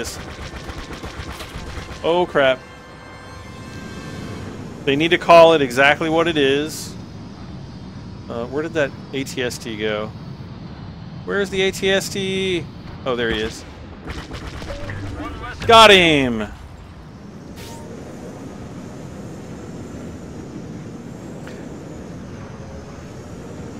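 A starfighter engine roars steadily.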